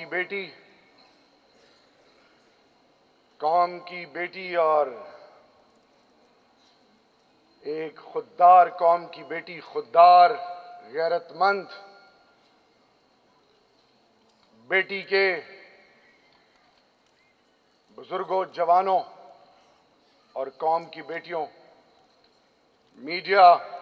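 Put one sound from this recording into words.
A man gives a speech through a microphone and loudspeakers in a large echoing hall, pausing between phrases.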